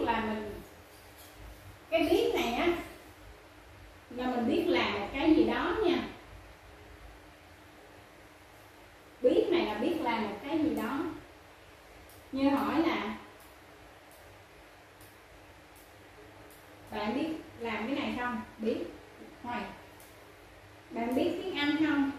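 A woman speaks clearly and slowly, pausing between phrases, close by.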